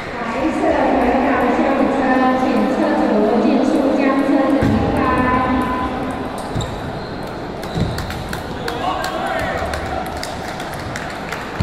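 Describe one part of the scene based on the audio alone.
Table tennis balls click against paddles and tables.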